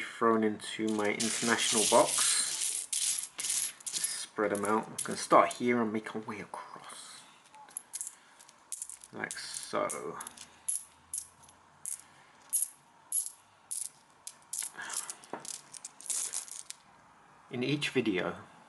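Coins clink and jingle against each other as a hand gathers them.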